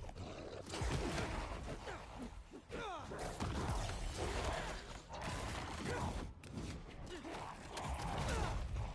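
Heavy punches and impacts thud in a fast fight.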